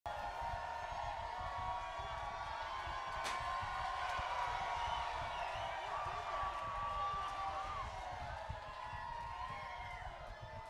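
A live rock band plays loud distorted guitars and drums in a large room.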